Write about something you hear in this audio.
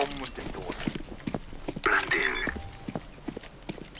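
A bomb's keypad beeps as it is armed.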